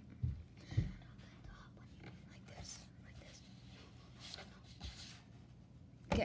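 Paper rustles and slides under a hand.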